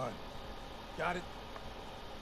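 A young man answers quietly and briefly.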